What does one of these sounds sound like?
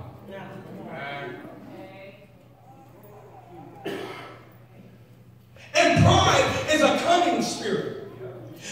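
A man speaks with animation into a microphone through loudspeakers in a large echoing hall.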